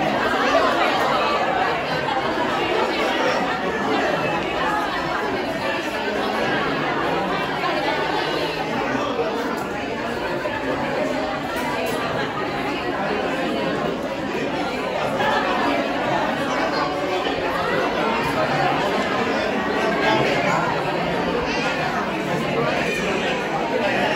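A crowd of women chatter with animation close by.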